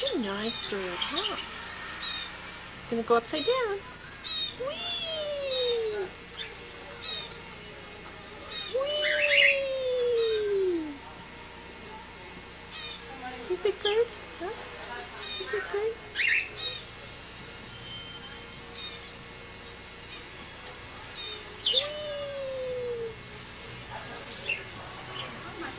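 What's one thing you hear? A parrot squawks and chirps close by.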